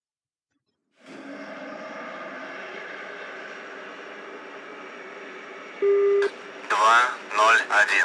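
A jet engine hums steadily inside a cockpit.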